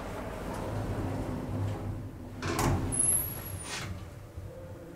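Lift doors slide shut with a thud.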